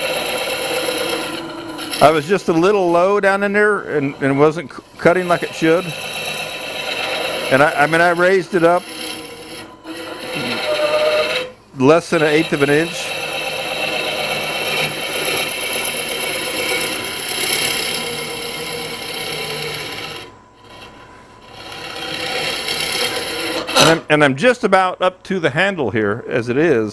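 A gouge scrapes and shaves spinning wood with a rough hiss.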